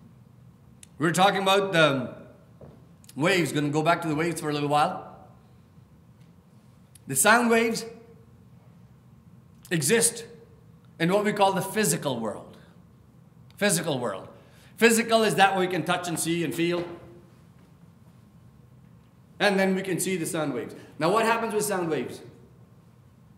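A middle-aged man speaks slowly and earnestly into a microphone, with pauses between phrases, in a room with a slight echo.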